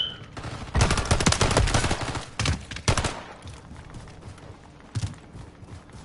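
Pistol shots fire in quick, sharp bursts.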